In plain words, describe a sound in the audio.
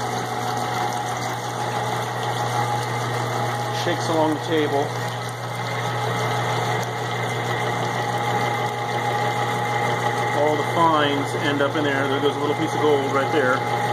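Water flows and splashes across a vibrating table.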